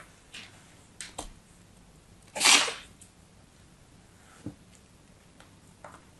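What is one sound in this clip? A plastic mould is pressed into sand and lifted out.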